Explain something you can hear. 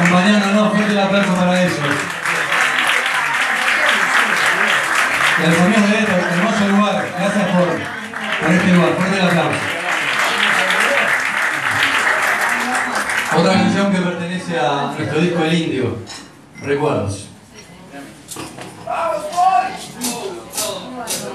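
A man sings loudly through a microphone over a live band.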